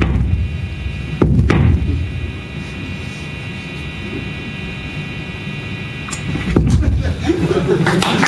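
Electric guitars drone and buzz loudly through amplifiers.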